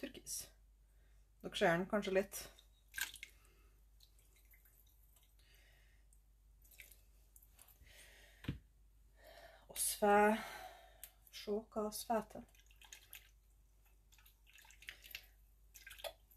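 A bottle gurgles as it fills under water.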